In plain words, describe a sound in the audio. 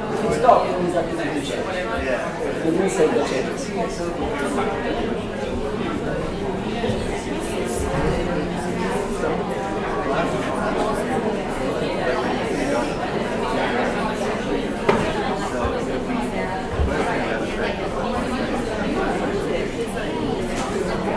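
A man speaks calmly and steadily, as if giving a talk.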